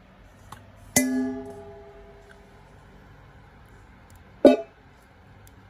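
A knife taps against a metal bowl.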